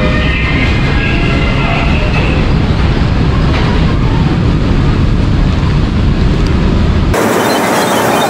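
A ride car rumbles and rattles along a track.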